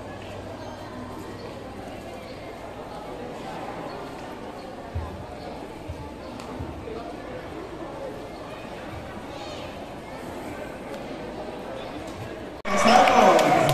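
Children murmur quietly nearby.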